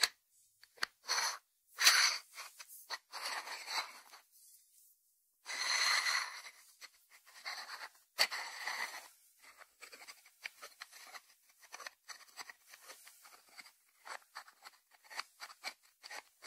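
A ceramic dish slides and rubs on a wooden board.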